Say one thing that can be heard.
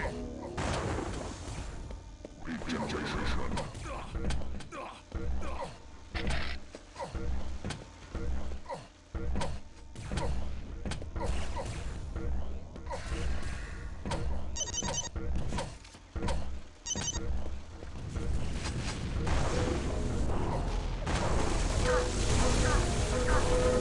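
A beam weapon crackles and hums in bursts.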